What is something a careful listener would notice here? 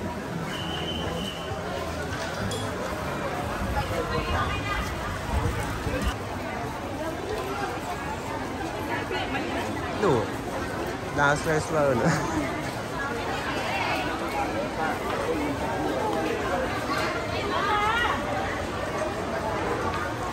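A busy crowd murmurs and chatters all around in a large open market.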